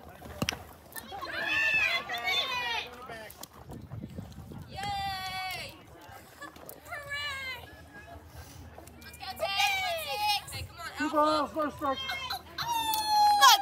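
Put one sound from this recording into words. Young girls chant and cheer loudly nearby.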